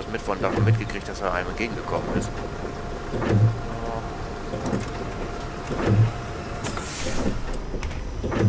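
A bus engine rumbles as the bus pulls away and drives on.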